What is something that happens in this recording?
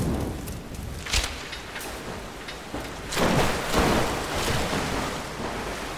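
Flames whoosh up as something catches fire.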